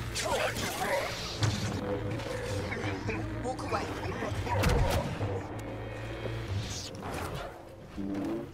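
A lightsaber hums steadily and swooshes as it swings.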